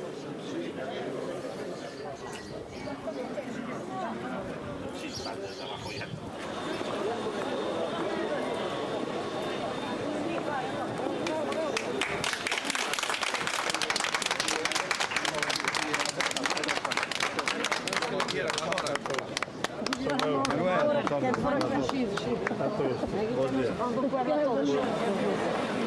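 Several men and women chat and greet each other nearby.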